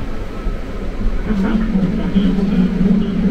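A train's motor hums with a rising whine.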